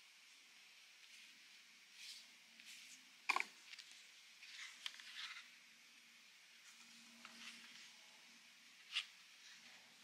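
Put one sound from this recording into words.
Paper cards rustle and slide in hands.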